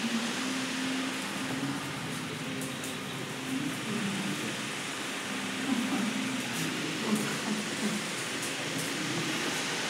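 Dog claws patter on a hard floor.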